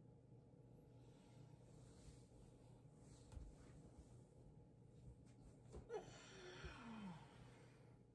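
Bed sheets rustle as a man sits up.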